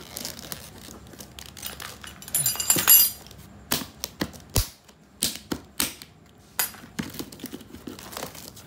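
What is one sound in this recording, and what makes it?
Fingers tap and rub on a plastic case.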